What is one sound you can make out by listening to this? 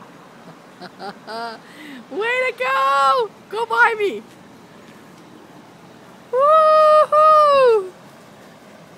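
A man calls out loudly in drawn-out shouts nearby.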